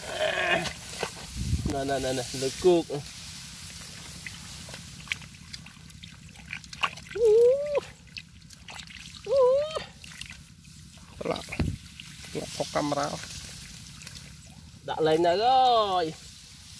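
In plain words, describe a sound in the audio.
Hands squelch and scrape in wet mud.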